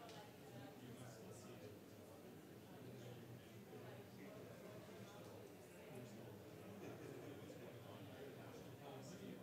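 Many people murmur and chat in a large, echoing hall.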